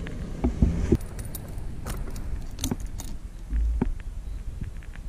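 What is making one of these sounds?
Keys jingle and click as a key turns in an ignition.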